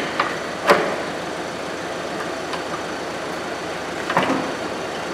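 Metal tools clink and knock against a car's underside.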